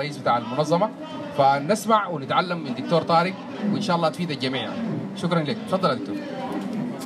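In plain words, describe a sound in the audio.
A young man speaks forcefully into a microphone through a loudspeaker.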